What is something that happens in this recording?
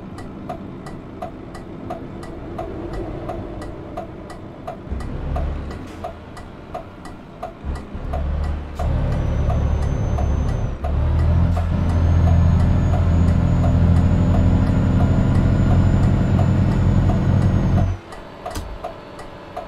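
A truck engine drones steadily, growing louder and heavier for a while before easing off.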